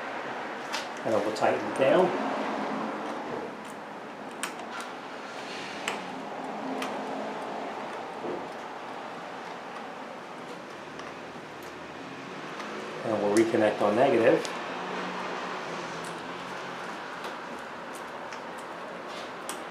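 Small metal parts click lightly under a car's hood.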